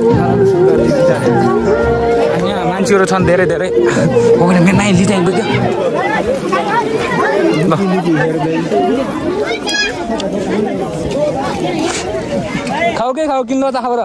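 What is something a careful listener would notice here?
A crowd of men and women chatters loudly close by, outdoors.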